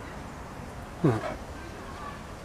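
A tiger gives a short, deep grunt close by.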